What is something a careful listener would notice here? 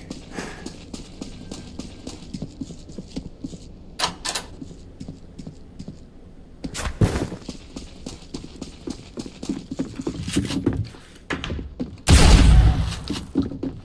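Footsteps tap steadily along a hard floor.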